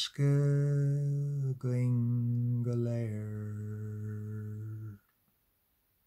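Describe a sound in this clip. A man sings a sustained melody close to a microphone.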